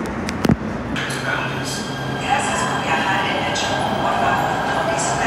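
A train hums and rattles while standing at an underground platform.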